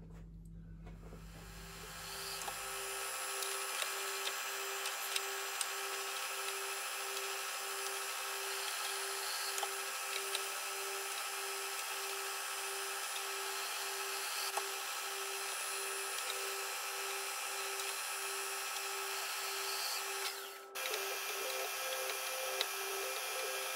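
A milling machine whirs steadily as it cuts metal.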